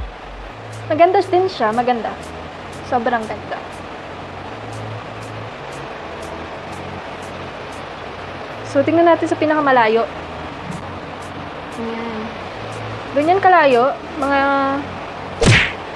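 A young girl talks up close, with animation.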